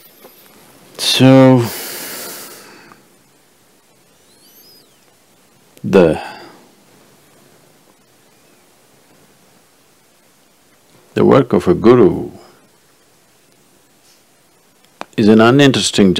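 An elderly man speaks slowly and calmly in short bursts, close to a microphone.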